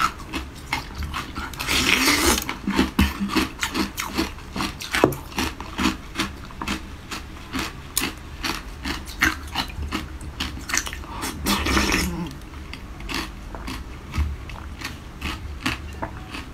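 Something crisp cracks sharply as a young woman bites into it up close.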